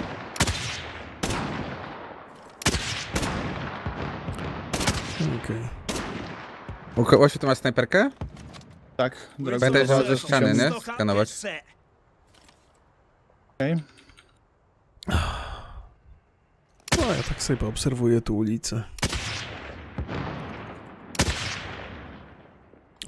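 Gunshots crack loudly and echo away.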